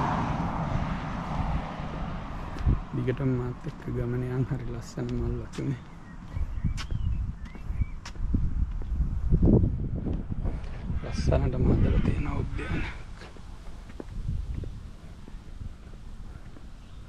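Footsteps fall on a paved path.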